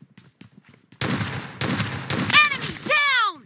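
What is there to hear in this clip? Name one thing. A game gun fires rapid bursts.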